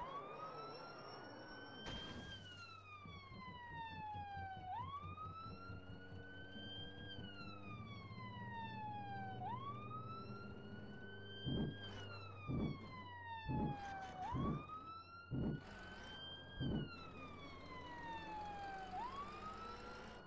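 A van engine hums steadily.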